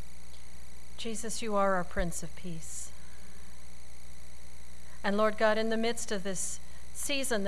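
A middle-aged woman speaks calmly into a microphone, heard over loudspeakers in a large room.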